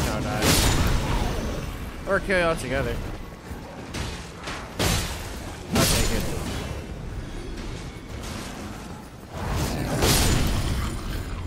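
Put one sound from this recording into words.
Blades clash and strike with sharp impacts.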